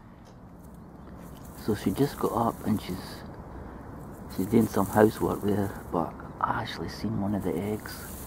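A swan rustles dry reeds on its nest.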